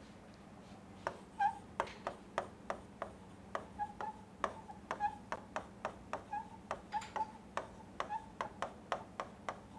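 A pen taps and scratches on a board.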